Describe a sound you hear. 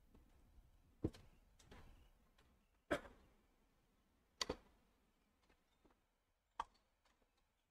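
A tennis ball is struck with a racket and bounces on a hard court with sharp pops.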